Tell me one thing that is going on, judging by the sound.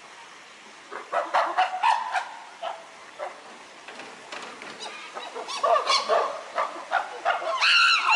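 Chimpanzees scream and hoot loudly nearby.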